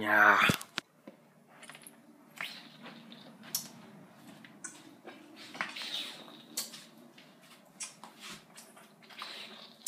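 A teenage boy gulps a drink from a bottle.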